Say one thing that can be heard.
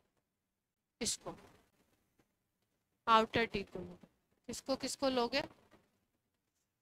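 A young woman speaks calmly and clearly into a close microphone, in short bursts with pauses.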